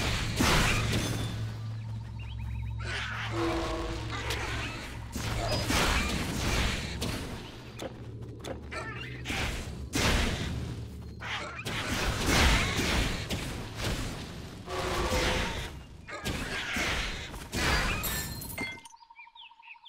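Fiery spells burst and crackle in quick succession.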